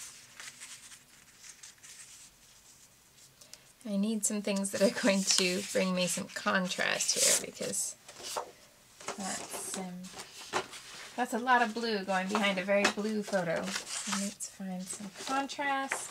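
Paper rustles and slides as it is handled.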